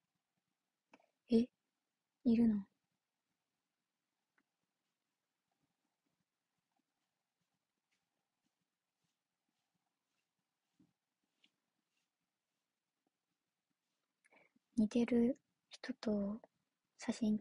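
A young woman speaks briefly and casually close to a microphone, with long pauses.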